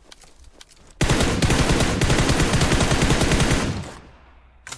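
An automatic rifle fires a rapid, steady burst of shots.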